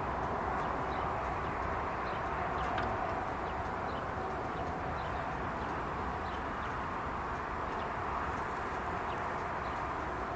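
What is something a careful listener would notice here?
Crossing barriers swing down.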